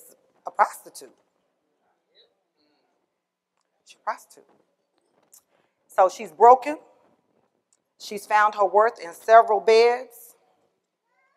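A woman speaks with animation into a microphone in a large hall, pausing between phrases.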